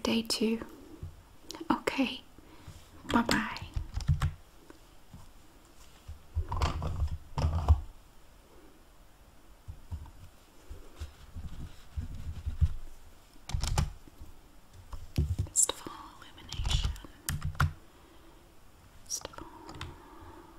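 A woman speaks quietly and calmly close by.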